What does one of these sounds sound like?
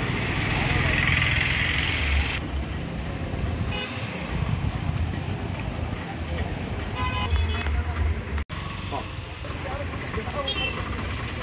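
Traffic and street bustle hum outdoors.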